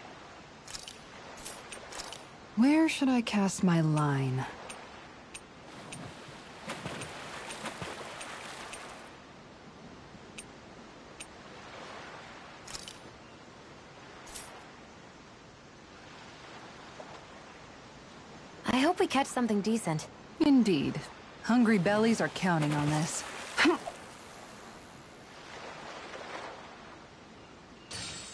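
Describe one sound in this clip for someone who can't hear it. Sea waves lap gently against a wooden pier.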